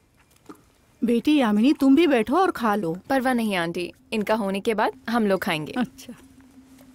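An older woman speaks with animation nearby.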